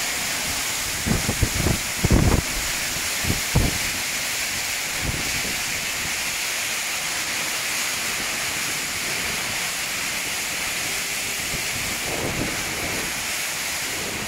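Strong wind gusts buffet the microphone.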